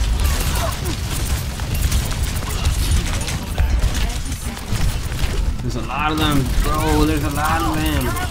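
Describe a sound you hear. Guns fire rapidly in a video game.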